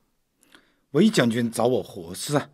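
A man speaks firmly.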